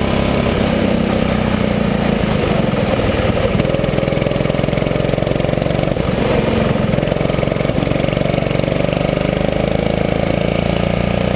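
A small kart engine buzzes loudly and revs as it speeds around bends.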